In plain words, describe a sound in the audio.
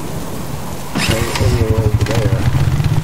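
A quad bike engine starts and rumbles with a throbbing idle.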